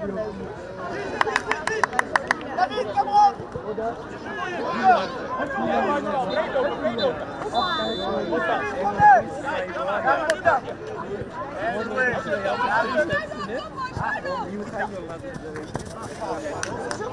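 Young male players shout to each other across an open field.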